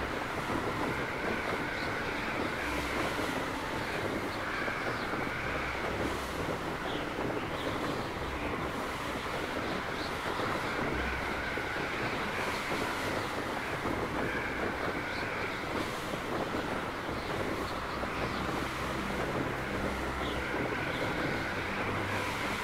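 A horse's hooves thud steadily through snow.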